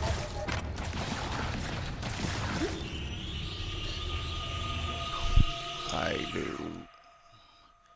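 A laser beam fires with a loud crackling blast.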